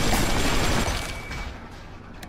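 A gun fires a loud burst of shots.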